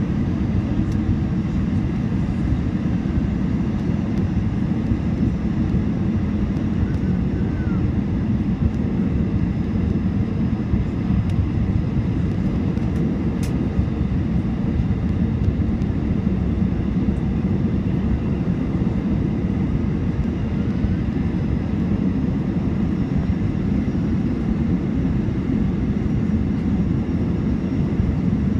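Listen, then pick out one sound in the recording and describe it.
An aircraft's engines roar steadily from inside the cabin.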